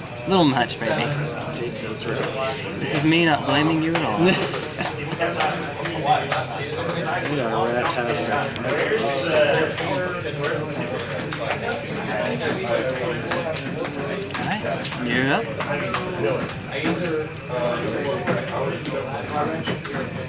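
Playing cards riffle and slide as they are shuffled by hand.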